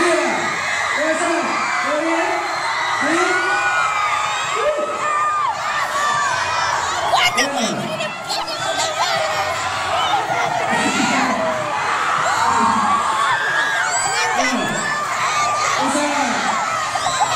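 A crowd cheers and screams.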